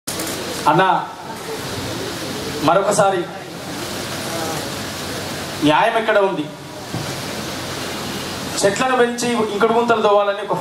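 A young man speaks loudly and forcefully into a microphone over loudspeakers, in bursts with pauses.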